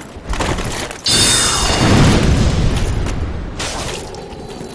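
A magic blast booms and roars, then fades.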